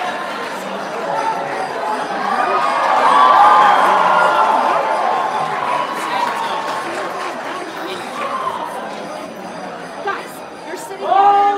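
A large crowd of children and adults chatters in a big echoing hall.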